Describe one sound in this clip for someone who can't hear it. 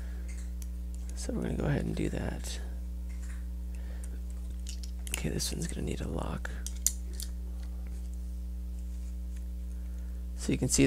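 A hex key turns a bolt with faint metallic clicks.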